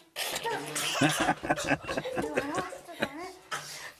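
A man laughs heartily close to a microphone.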